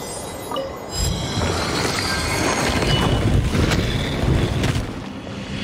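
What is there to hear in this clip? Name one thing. A large stone door rumbles open.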